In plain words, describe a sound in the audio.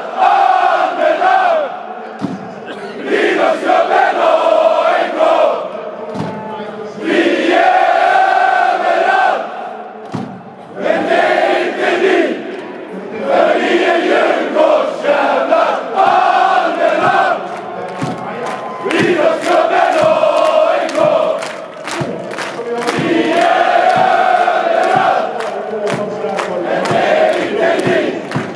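A large crowd of fans chants and sings loudly outdoors.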